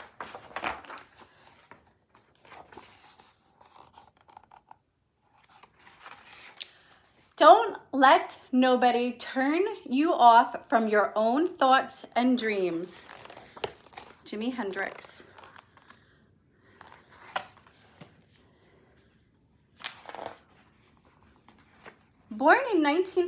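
A woman reads aloud with expression close by.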